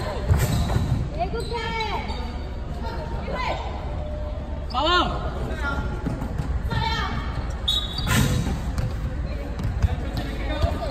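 A volleyball thumps against hands and arms.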